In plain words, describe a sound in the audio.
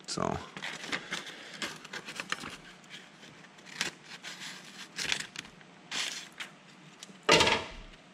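Scissors snip through stiff paper.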